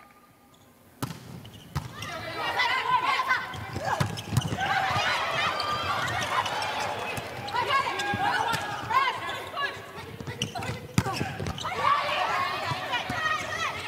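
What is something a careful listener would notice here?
A volleyball is struck with sharp smacks.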